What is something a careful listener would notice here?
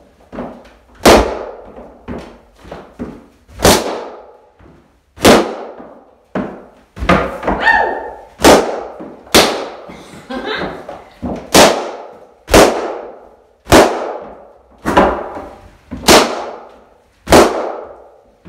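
Latex balloons burst with sharp pops as they are stomped underfoot.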